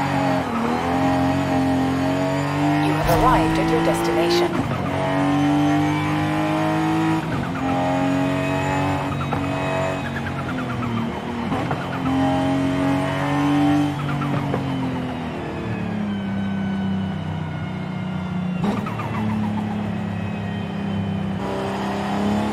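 A car engine revs up and drops back as the gears shift.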